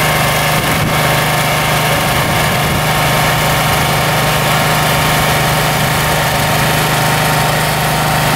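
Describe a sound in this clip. A portable generator engine runs with a steady, loud hum close by.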